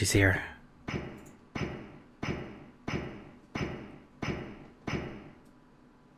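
Heavy armoured footsteps clank slowly in a steady rhythm.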